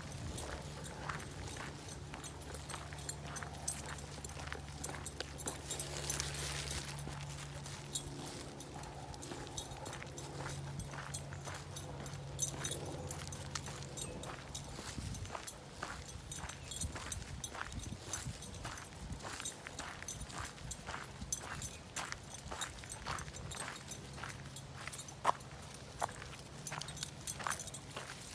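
A dog's paws patter on gravel.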